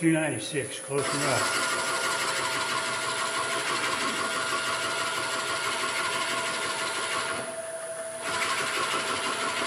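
A chisel scrapes loudly against spinning wood, pausing briefly near the end.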